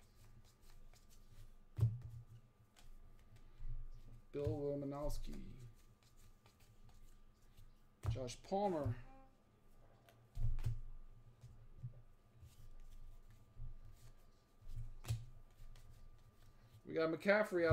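Trading cards rustle and tap softly as hands sort through them.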